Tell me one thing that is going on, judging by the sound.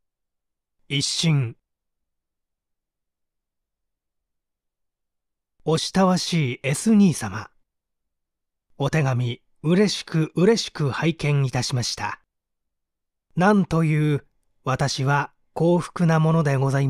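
A young man speaks calmly and close to a microphone, in short phrases with pauses.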